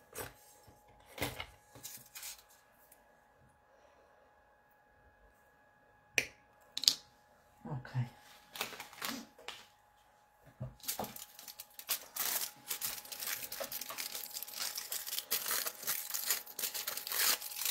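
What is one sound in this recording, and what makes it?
Aluminium foil crinkles and rustles as hands crumple it.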